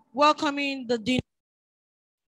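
A woman speaks into a microphone through a loudspeaker.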